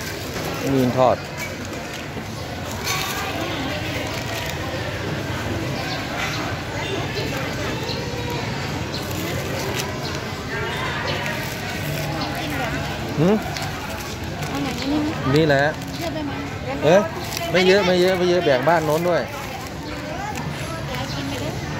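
Plastic bags crinkle as they are handled.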